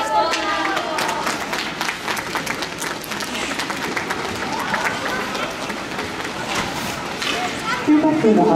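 Hockey sticks tap and clatter on the ice.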